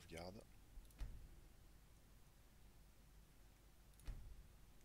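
A game menu clicks as options are selected.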